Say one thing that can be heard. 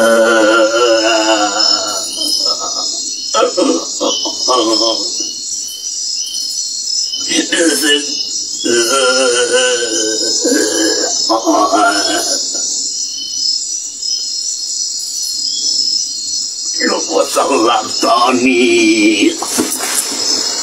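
A man snores loudly nearby.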